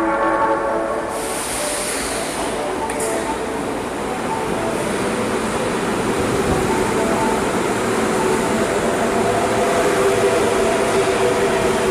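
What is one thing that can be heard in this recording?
A train rumbles into the station and roars past, loud and echoing.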